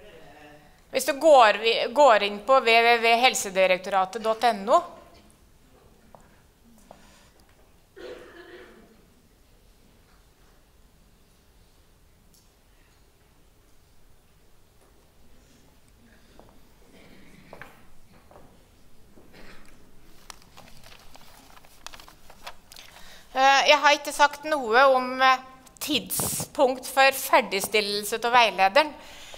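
An elderly woman speaks calmly through a microphone in a large hall.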